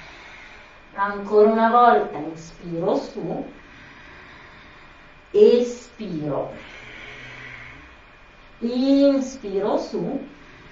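A young woman speaks calmly and close by, in short phrases.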